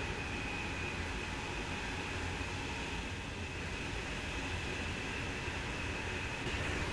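Steel wheels rumble and whine on the rails.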